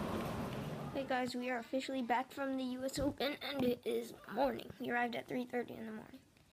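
A boy talks with animation close to a microphone.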